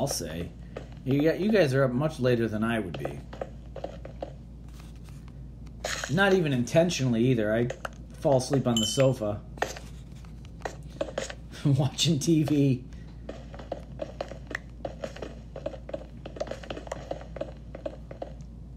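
A pickaxe taps and chips away at stone blocks in quick, repeated knocks.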